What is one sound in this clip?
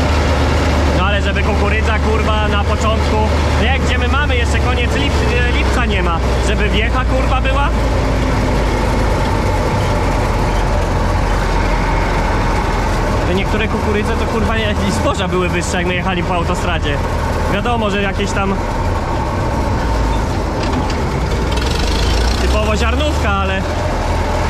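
A man talks loudly over the engine noise.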